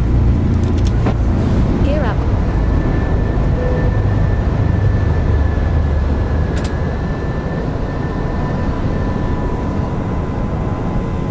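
A steady low roar of aircraft engines fills the cockpit.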